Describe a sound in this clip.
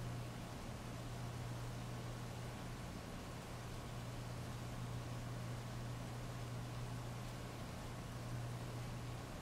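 Steady heavy rain pours down outdoors.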